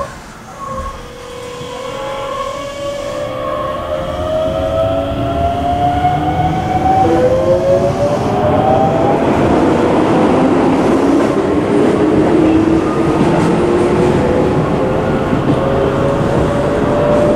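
Train wheels rumble on the tracks.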